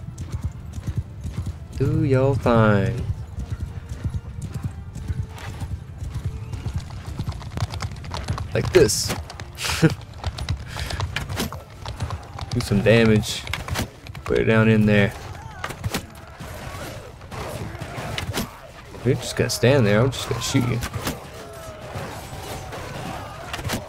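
Horse hooves thud steadily over the ground.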